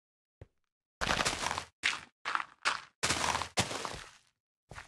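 A shovel digs through dirt with crunchy bursts.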